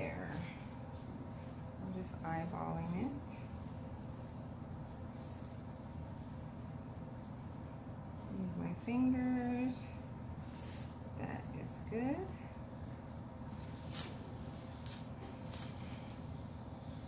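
Plastic wrap crinkles and rustles under a person's hands.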